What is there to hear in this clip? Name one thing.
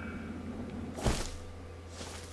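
A body lands with a heavy thud on grass.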